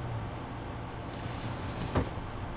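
A window slides open.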